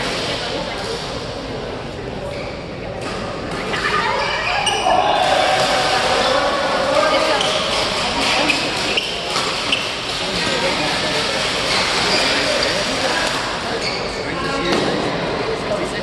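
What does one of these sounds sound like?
Shuttlecocks are struck with rackets in sharp pops, echoing in a large hall.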